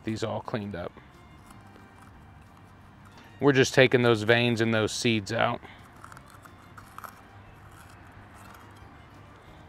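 A knife cuts through peppers on a board.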